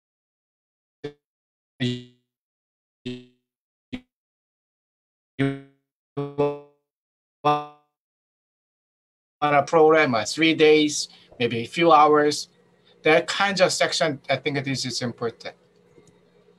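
A man speaks through an online call, in short broken bursts.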